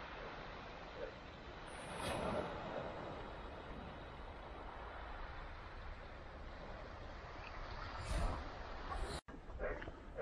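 Small waves lap gently on a pebble shore.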